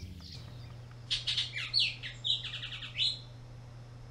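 A single bird whistles a few loud, clear notes.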